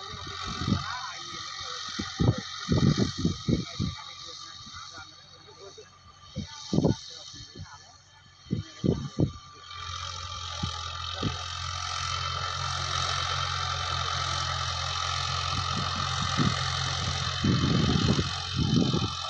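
A tractor engine hums steadily in the distance.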